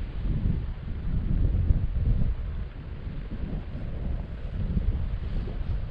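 Tall grass rustles in the wind.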